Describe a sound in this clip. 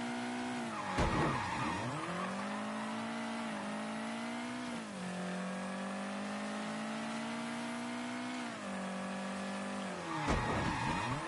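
Tyres screech on the road as a car skids.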